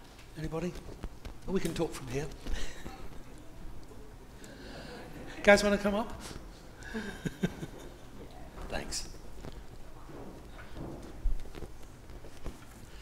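An elderly man speaks calmly in a large echoing room.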